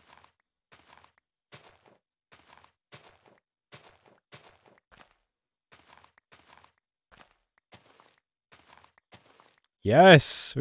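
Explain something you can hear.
Soft, quick clicks repeat as a game character fertilises crops.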